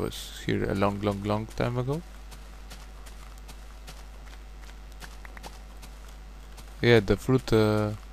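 Footsteps rustle on grass.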